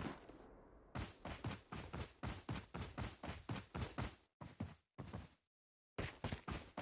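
Quick footsteps run over dry ground.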